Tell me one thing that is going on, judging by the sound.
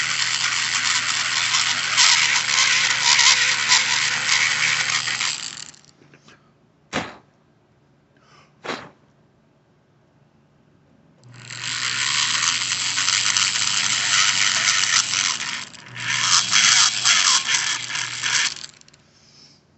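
A small high-speed rotary grinder whines against metal.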